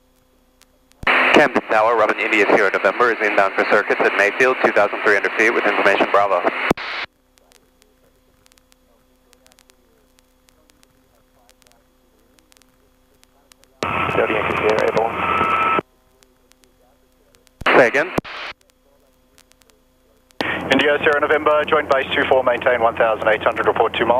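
A man speaks calmly over a radio headset.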